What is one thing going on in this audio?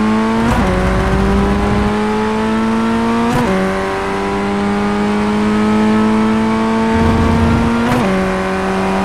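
A gearbox clicks sharply as gears shift.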